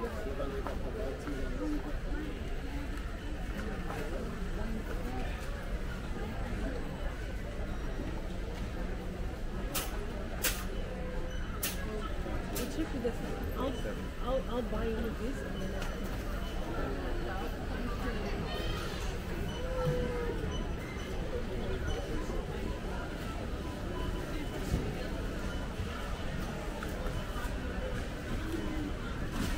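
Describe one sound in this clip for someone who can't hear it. A crowd of shoppers murmurs and chatters in a large echoing hall.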